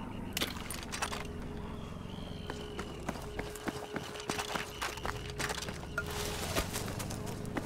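Footsteps crunch on gravel and dry ground.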